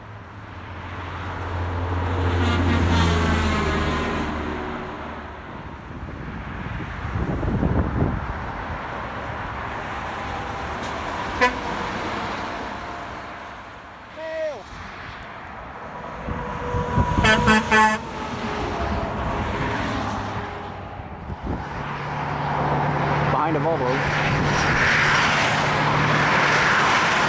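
Cars and trucks hum by steadily in the distance.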